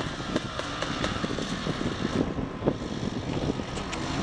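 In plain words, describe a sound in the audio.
Loose dirt sprays from a spinning tyre.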